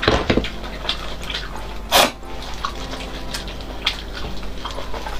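Wet food squelches and crunches as it is pulled apart close up.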